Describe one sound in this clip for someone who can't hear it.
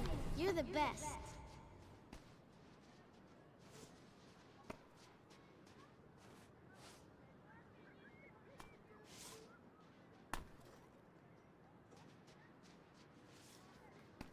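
Footsteps crunch softly in snow.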